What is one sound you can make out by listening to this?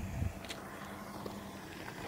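A pickup truck drives over a rail crossing.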